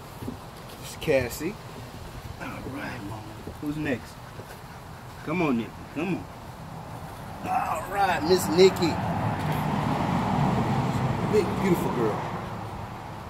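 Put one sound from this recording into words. A man talks nearby with animation.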